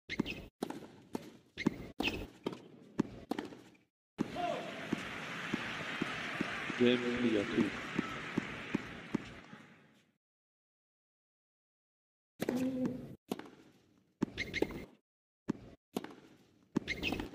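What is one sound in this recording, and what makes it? Tennis balls are struck hard by rackets and bounce on a hard court.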